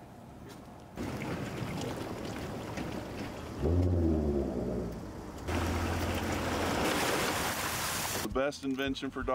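Water laps and splashes at the shore.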